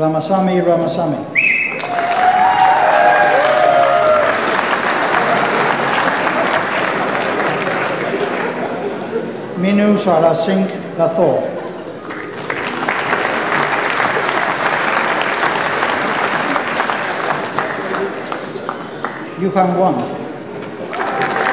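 A man reads out names through a loudspeaker in a large hall.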